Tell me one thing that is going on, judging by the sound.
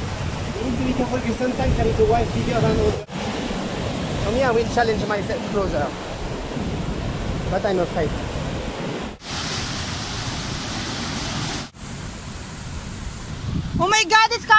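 Waves crash and surge against rocks.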